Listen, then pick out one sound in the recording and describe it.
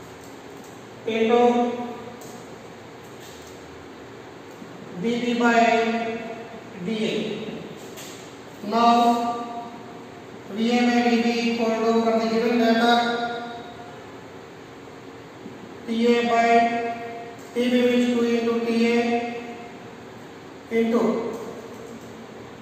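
A man speaks in short, steady bursts, explaining calmly nearby.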